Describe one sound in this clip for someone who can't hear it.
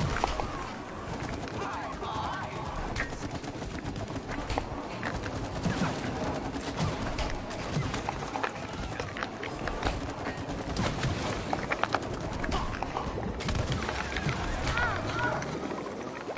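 Video game combat effects clash and crackle with sharp hits.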